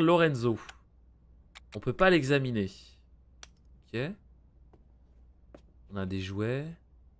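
A man speaks with animation, close to a microphone, in short bursts.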